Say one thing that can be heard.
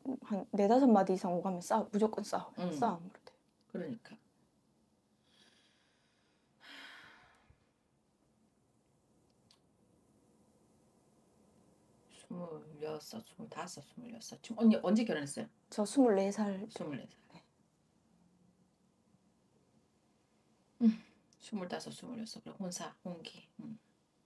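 A woman speaks calmly and close by, in bursts with pauses.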